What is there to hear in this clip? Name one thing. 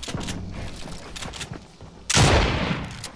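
A pickaxe strikes wooden planks.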